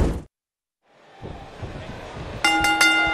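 A large crowd cheers and murmurs in a big echoing arena.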